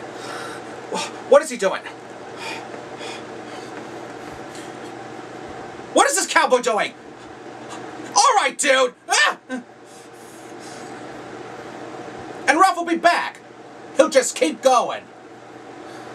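A young man speaks close by in playful character voices, in short animated bursts.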